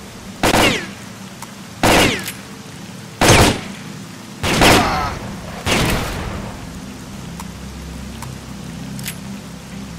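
A shotgun is reloaded with clicking shells.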